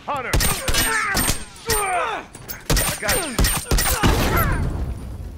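Gunshots crack in rapid bursts and echo.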